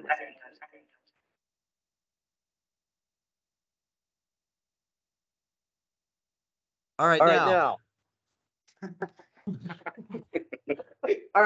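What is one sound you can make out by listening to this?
A woman speaks cheerfully over an online call.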